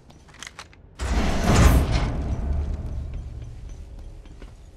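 A heavy sliding door rumbles open with a loud whoosh.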